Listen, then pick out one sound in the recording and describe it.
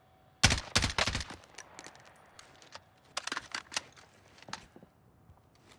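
A rifle fires a few quick bursts of shots up close.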